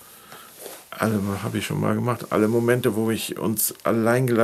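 An older man speaks calmly and clearly into a close microphone.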